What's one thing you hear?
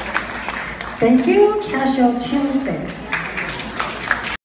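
People in a small audience clap.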